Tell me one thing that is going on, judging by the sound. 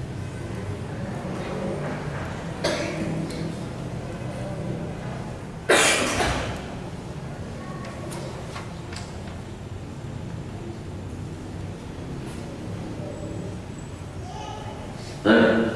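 A man reads aloud in a calm voice, close by.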